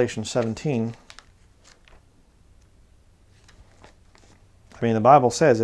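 Book pages rustle softly as they are turned.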